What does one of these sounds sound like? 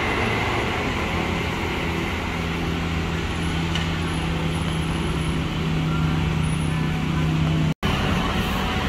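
An electric train motor hums steadily as a train pulls away.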